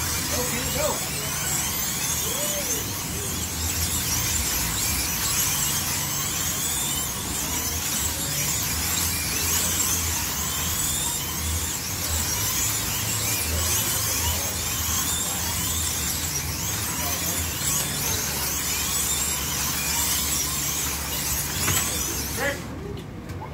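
Small electric slot cars whine as they race past again and again.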